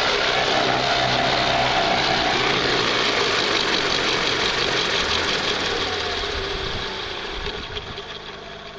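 Rotor blades whoosh as they spin, slowing and fading.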